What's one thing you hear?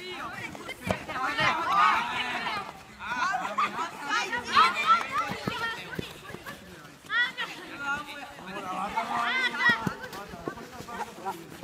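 Young men shout and cheer outdoors.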